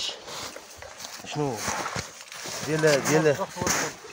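Boots crunch through snow.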